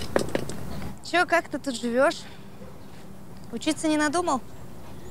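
A young woman speaks brightly, outdoors.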